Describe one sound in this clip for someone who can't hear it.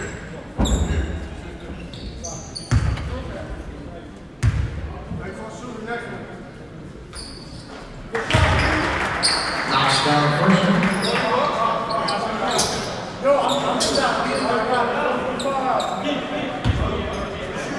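A basketball bounces with heavy thuds on a wooden court in a large echoing gym.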